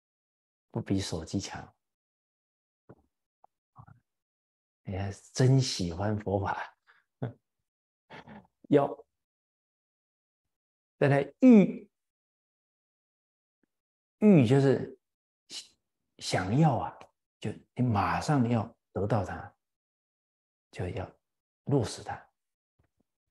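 An elderly man speaks with animation into a close microphone, in short phrases with pauses.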